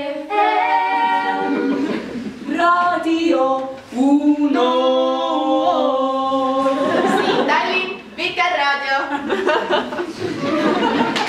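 A choir of young women sings together in an echoing room.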